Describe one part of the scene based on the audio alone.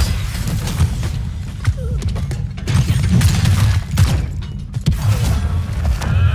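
Heavy booming impacts thud repeatedly.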